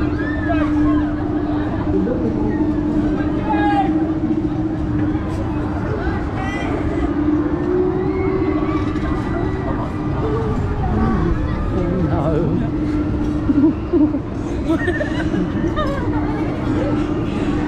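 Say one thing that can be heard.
A fairground ride whirs and rumbles loudly as it spins.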